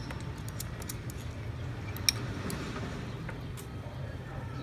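Buckles and straps click and rattle.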